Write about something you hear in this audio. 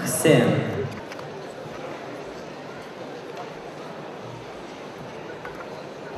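A large crowd murmurs in the background.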